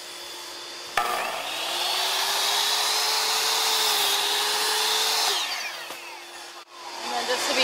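An electric miter saw whirs up to speed, cuts through wood and winds down.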